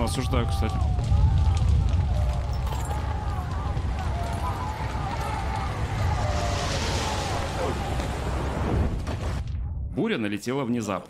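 Stormy sea water surges and splashes loudly.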